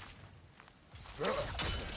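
A body leaps and whooshes through the air.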